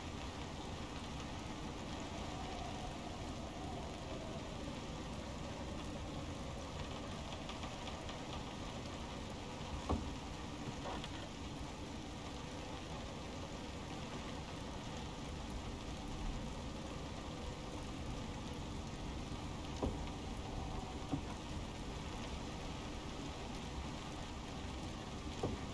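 A fire crackles in a stove.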